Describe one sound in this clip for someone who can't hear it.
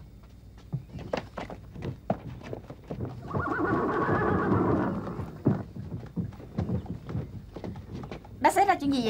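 Horse hooves clop on a dirt road.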